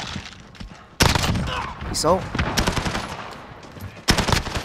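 Rapid gunfire bursts sound loudly.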